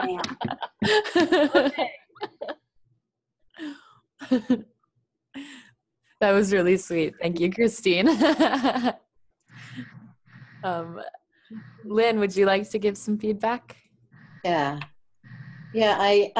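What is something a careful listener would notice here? Several women talk with animation over an online call.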